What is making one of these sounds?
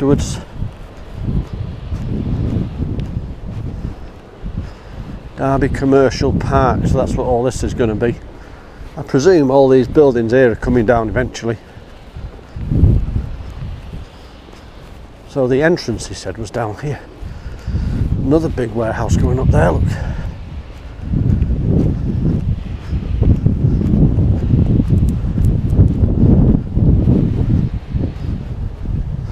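Wind gusts and rumbles across the microphone outdoors.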